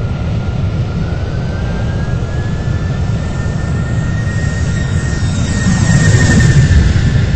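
A jet engine's whine rises in pitch as an airliner lifts off.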